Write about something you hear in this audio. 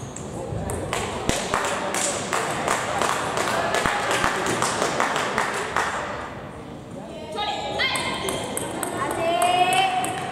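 A table tennis ball clicks quickly back and forth off paddles and a table in an echoing hall.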